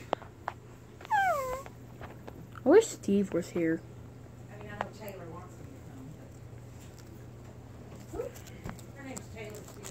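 A soft plush toy rustles as a hand handles it.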